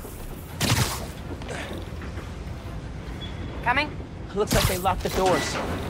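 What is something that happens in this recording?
Webs shoot out with sharp whooshes.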